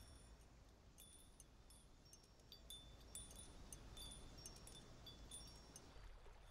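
Wind chimes tinkle softly.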